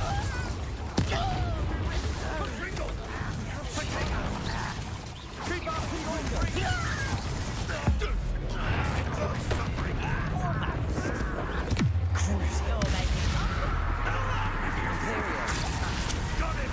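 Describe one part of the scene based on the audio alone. Magic spells crackle and blast.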